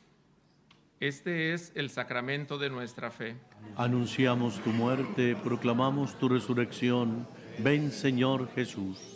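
A group of men recite a prayer together through a microphone.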